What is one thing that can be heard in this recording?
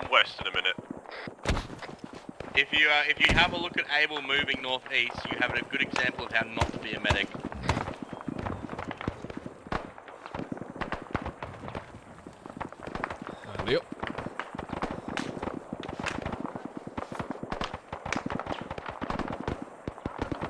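Footsteps crunch quickly over dirt and grass.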